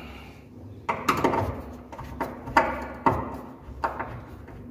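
A screwdriver turns a screw in a metal hinge with small clicks and scrapes.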